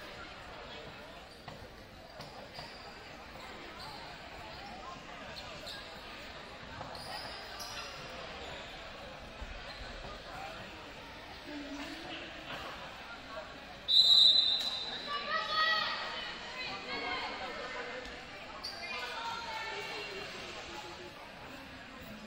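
A crowd murmurs throughout a large echoing gym.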